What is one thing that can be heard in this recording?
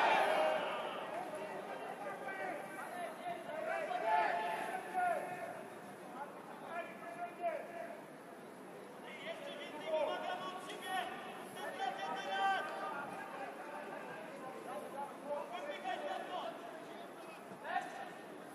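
Men on a football pitch shout to each other, heard outdoors from a distance.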